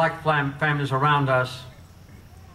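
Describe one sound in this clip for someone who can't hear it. An elderly man speaks slowly and solemnly into a microphone.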